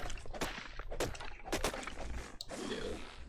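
Fists thump against a tree trunk.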